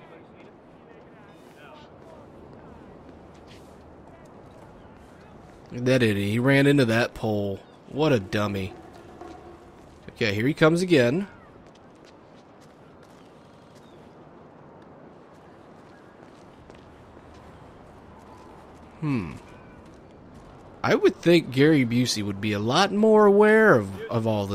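Footsteps walk on stone paving.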